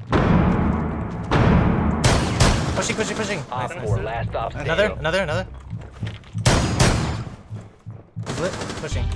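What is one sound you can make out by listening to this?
Rapid gunfire bursts out at close range.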